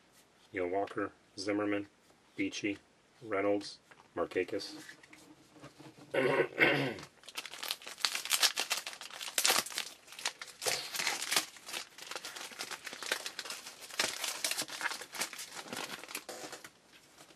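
Trading cards rustle and flick as they are shuffled by hand.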